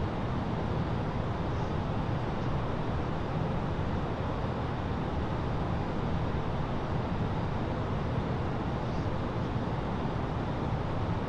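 A steady, low roar of jet engines and rushing air fills a cockpit.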